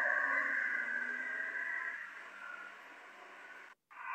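A minibus engine drives away.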